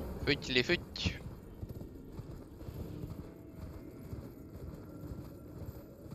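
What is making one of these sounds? A horse's hooves gallop on stone.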